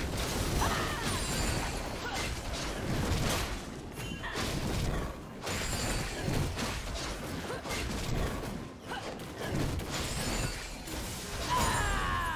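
Video game blows land with sharp thuds.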